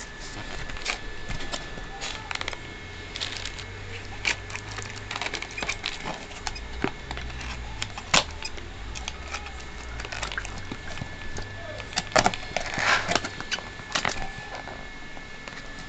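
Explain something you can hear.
Cardboard packaging rustles and taps as hands handle a box.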